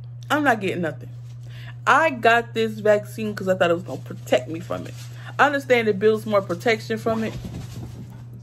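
A young woman talks with animation close to a phone microphone.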